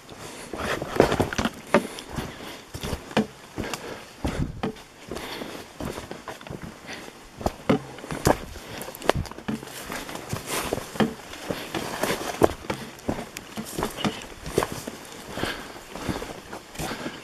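Footsteps crunch and rustle through leaves and undergrowth.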